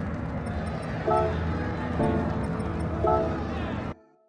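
Soft electronic menu beeps sound a few times.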